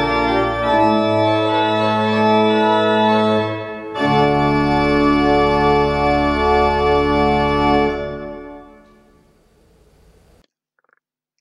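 An organ plays sustained chords that ring out in a large echoing hall.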